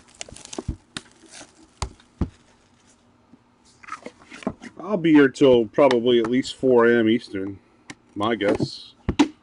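Plastic wrap crinkles and tears.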